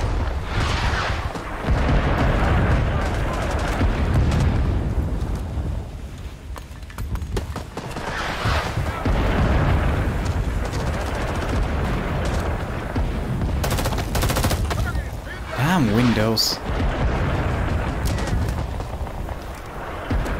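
Explosions rumble loudly outdoors.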